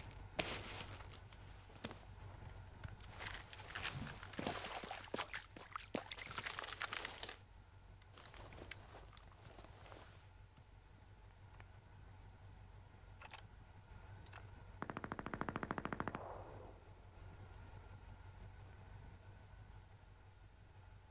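Boots thud and scrape on stone and roof tiles while climbing.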